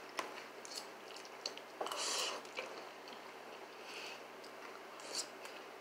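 A young girl slurps noodles.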